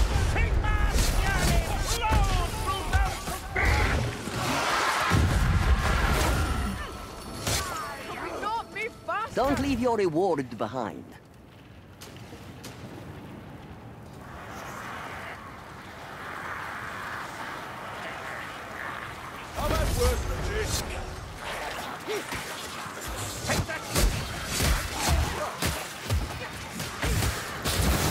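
Heavy blades hack and slash into flesh.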